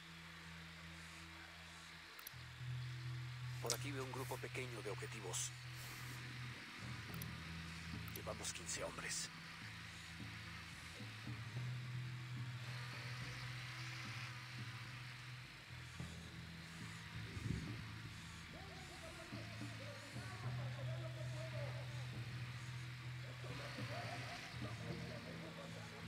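A drone's motors hum steadily.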